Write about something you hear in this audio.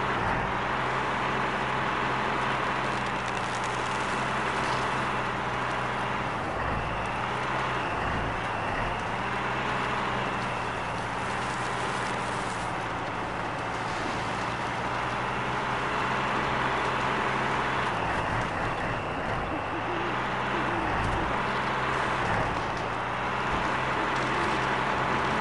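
A heavy truck engine rumbles steadily as it drives along a rough track.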